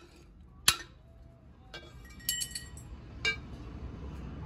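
A heavy metal cylinder scrapes and clanks as it is pulled off and set down on concrete.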